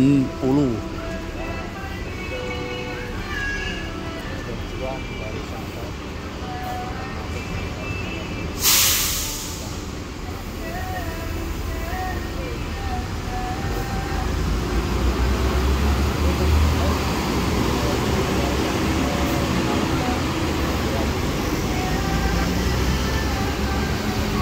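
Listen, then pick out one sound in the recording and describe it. A bus engine rumbles as the bus pulls away and drives past.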